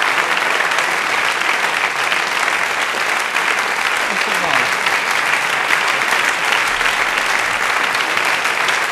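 A large audience claps loudly and steadily in a big hall.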